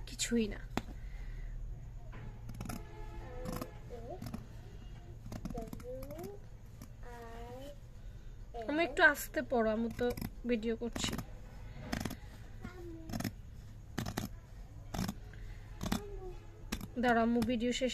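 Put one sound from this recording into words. Scissors snip through cloth with sharp clicks.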